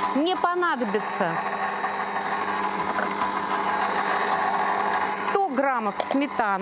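A stand mixer hums and whirs steadily.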